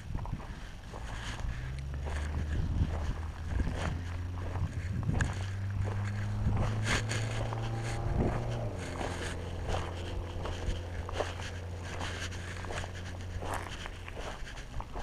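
A small off-road motorbike engine hums and revs.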